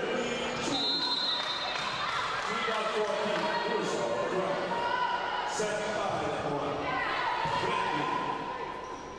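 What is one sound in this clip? Young players call out to each other.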